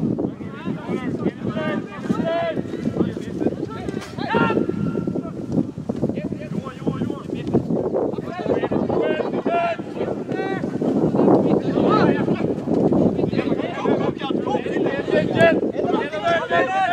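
Players shout to one another across an open field.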